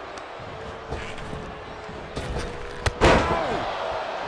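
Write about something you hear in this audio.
Bodies thud heavily onto a wrestling ring mat.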